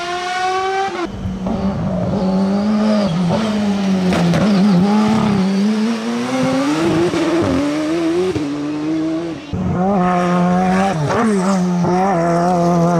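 Another racing car engine screams past close by, revving up and down.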